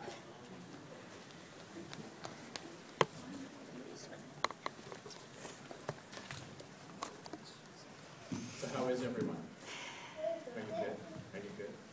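Children speak and giggle softly nearby.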